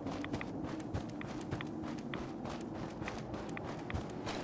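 A radiation counter crackles with quick, irregular clicks.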